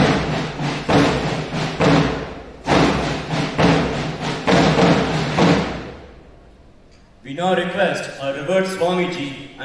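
A young man speaks loudly through a loudspeaker in a large echoing hall.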